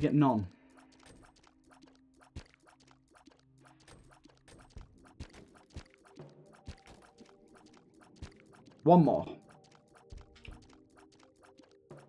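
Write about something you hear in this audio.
Small watery shots pop in quick succession.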